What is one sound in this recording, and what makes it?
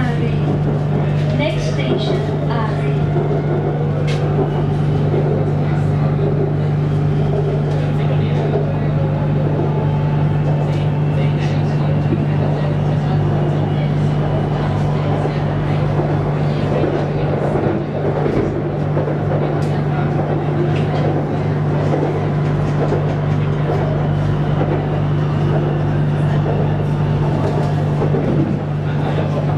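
A train hums and rumbles steadily along an elevated track, heard from inside a carriage.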